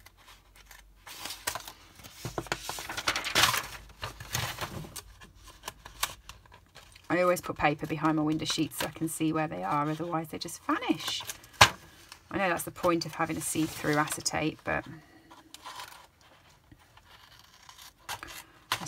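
A stiff plastic sheet rustles and crinkles as it is handled.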